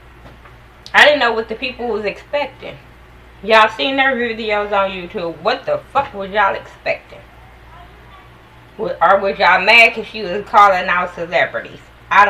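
A woman speaks close to a microphone, with animation.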